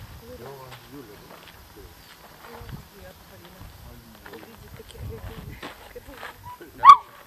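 A girl talks excitedly nearby, outdoors.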